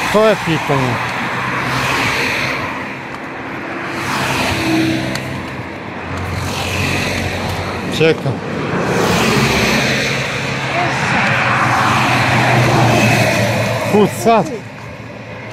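Traffic rushes past loudly on a nearby road.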